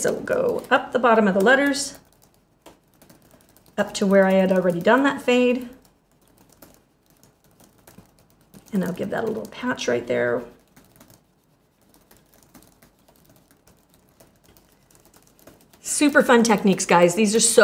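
A woman speaks calmly close by, in short phrases with pauses.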